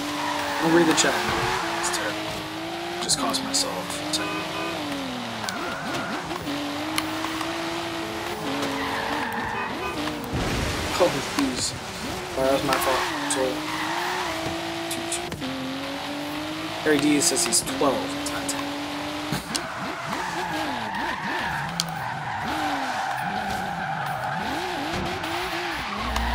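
A game car engine hums and revs up and down throughout.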